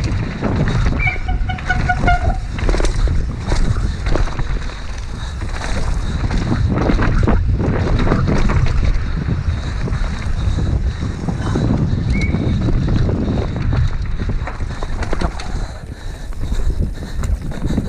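A mountain bike rattles and clanks over bumps.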